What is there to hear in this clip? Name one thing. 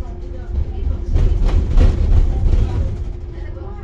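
A vehicle rattles and thumps over a bump in the road.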